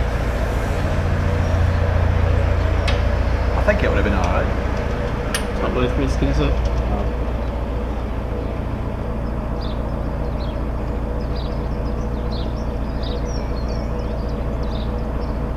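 A boat engine chugs with a steady low rumble.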